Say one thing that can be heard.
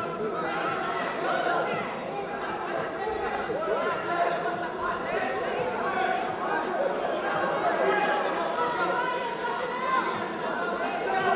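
Men talk and shout in a large echoing hall.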